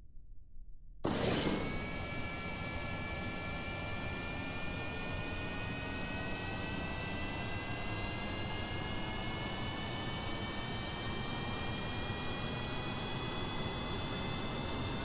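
Rocket engines burst into a loud roar with a slowly rising whine.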